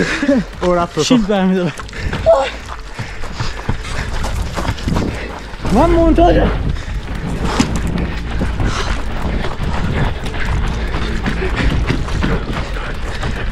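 Footsteps run quickly over gravel and paving.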